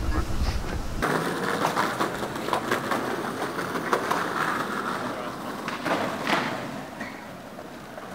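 Footsteps tap on a paved street.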